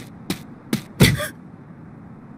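A heavy thud sounds.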